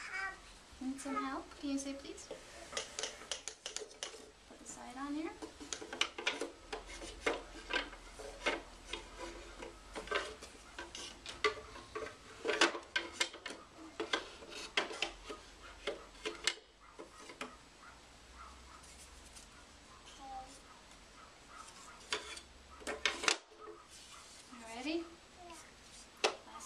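Wooden slats knock and clack together close by.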